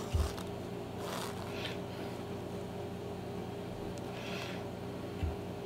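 A lace is pulled through leather with a soft rasping swish.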